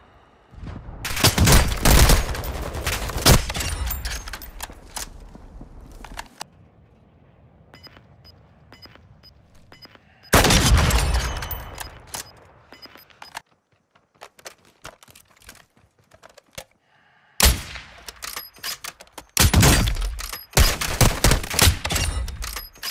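A rifle fires loud, booming shots that echo and fade.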